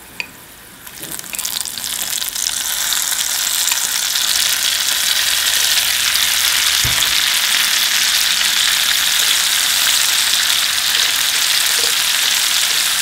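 Shrimp drop into a pan and sizzle loudly in hot oil.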